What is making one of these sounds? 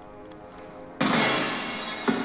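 A loud explosion bursts with crackling sparks.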